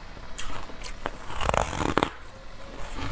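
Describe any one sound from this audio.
A young woman bites into soft food close to a microphone.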